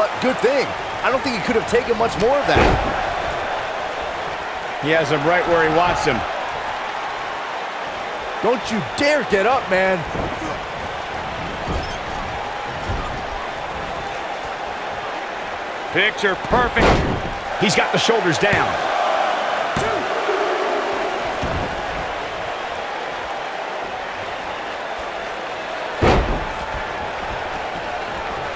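A large crowd cheers and roars steadily throughout.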